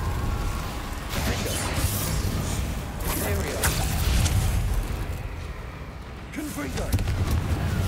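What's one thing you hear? Magic spells crackle and burst in quick blasts.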